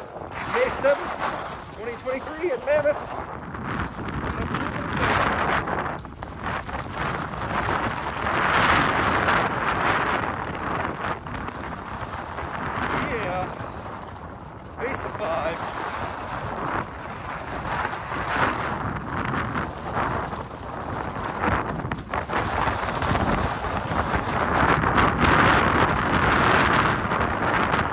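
Skis scrape and hiss over snow in swelling carving turns.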